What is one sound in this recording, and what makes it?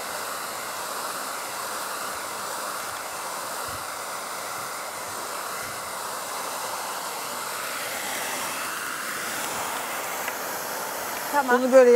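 A hair dryer blows with a steady whooshing roar.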